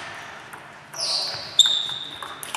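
Sports shoes squeak on the floor.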